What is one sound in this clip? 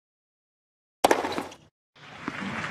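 A tennis racket strikes a ball with a sharp pop.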